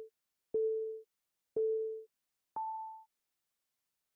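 A game's countdown timer beeps, ending on a higher tone.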